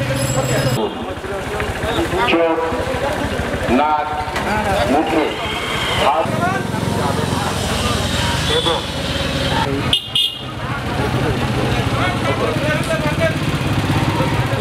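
Small motorcycle engines idle and putter nearby.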